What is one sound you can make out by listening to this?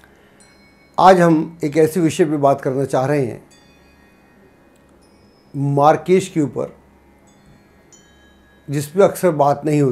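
An elderly man speaks calmly and clearly into a close microphone.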